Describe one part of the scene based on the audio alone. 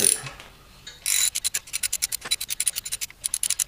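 A hand ratchet clicks rapidly.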